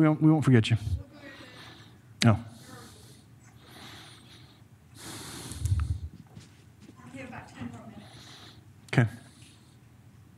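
People murmur quietly in the background.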